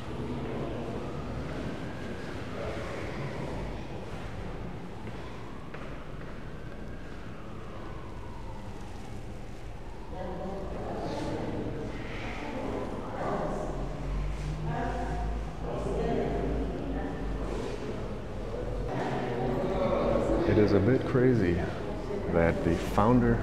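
A man talks quietly in an echoing room.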